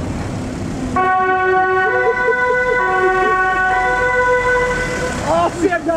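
A two-tone horn blares, stepping between two notes.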